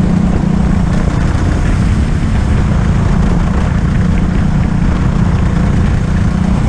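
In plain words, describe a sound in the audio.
Kart tyres rumble over a smooth track.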